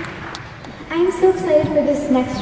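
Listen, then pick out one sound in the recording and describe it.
A young girl sings through a microphone.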